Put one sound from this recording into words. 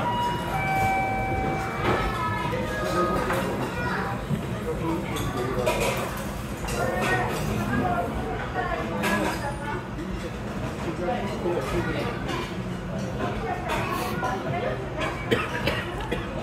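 A crowd of adult men and women chatter nearby in a busy, echoing room.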